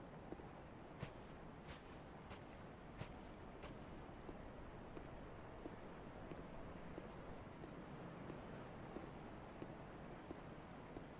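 Armored footsteps clink slowly on stone.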